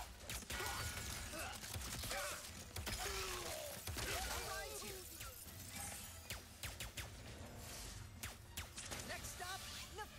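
Gunfire and blasts crackle in a game.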